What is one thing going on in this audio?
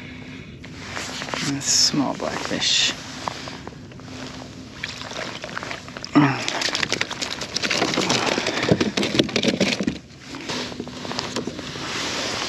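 A fish splashes and flaps against a hard surface nearby.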